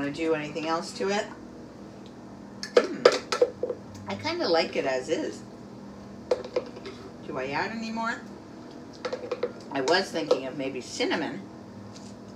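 A spoon scrapes and knocks inside a plastic jug.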